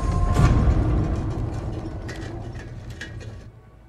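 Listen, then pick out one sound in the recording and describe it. Heavy boots step on concrete.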